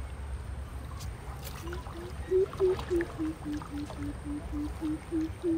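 Light wind blows across open water.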